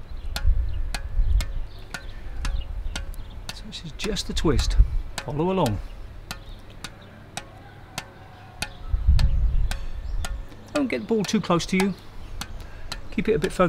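A ball taps repeatedly against a racket in a steady rhythm.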